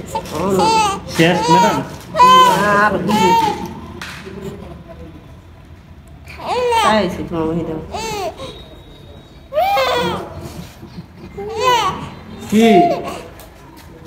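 A baby cries loudly in short bursts, close by.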